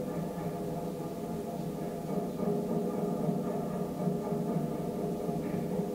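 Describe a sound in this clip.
Music plays through loudspeakers in a room.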